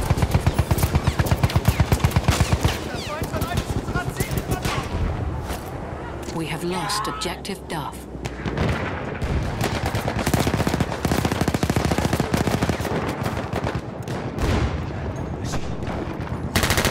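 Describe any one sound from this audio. A machine gun fires rapid, loud bursts close by.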